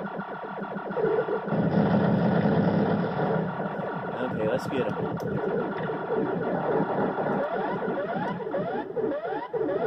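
Video game shots and explosions sound rapidly through small speakers.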